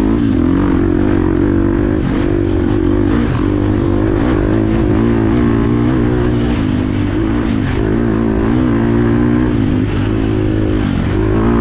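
Tyres squelch through mud and puddles.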